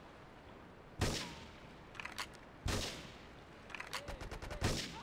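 A sniper rifle fires loud, sharp shots, a couple of seconds apart.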